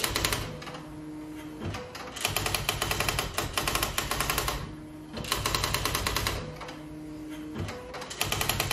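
An electric typewriter's carriage motor whirs between the bursts.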